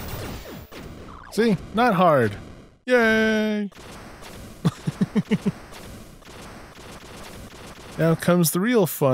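Electronic video game sound effects play in bursts.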